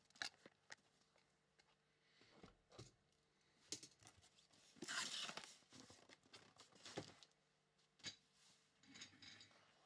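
Cardboard boxes rustle and bump as they are handled.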